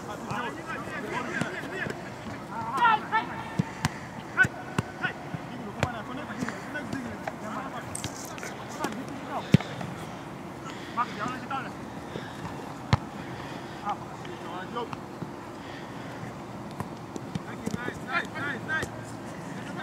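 Young men shout to each other across a field outdoors.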